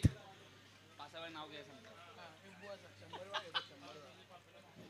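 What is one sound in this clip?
Young men chatter faintly outdoors.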